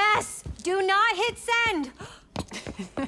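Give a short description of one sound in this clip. A woman shouts excitedly close by.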